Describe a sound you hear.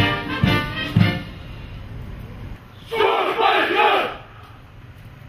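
A man shouts drawn-out commands loudly outdoors.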